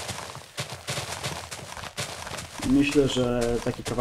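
Grass crunches as it is broken up.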